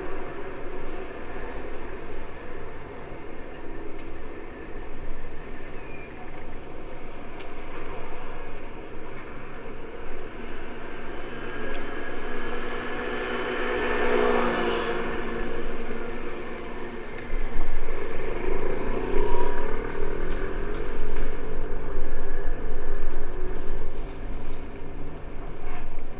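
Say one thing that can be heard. Wind rushes past steadily.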